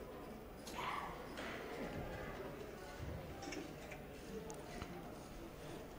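Pool balls click together.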